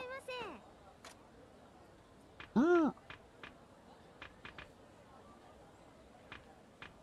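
Short menu ticks sound as a cursor moves between items.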